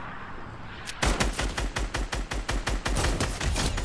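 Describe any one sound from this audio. A rifle fires in rapid bursts of shots.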